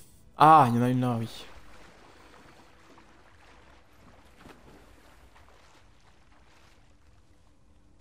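Water splashes softly as someone wades through it.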